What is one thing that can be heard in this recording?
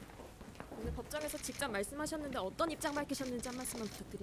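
A middle-aged woman speaks calmly into microphones close by.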